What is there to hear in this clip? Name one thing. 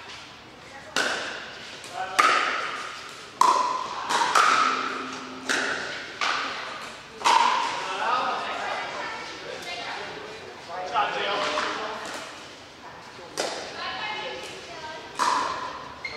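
Paddles strike a plastic ball with sharp pops that echo around a large hall.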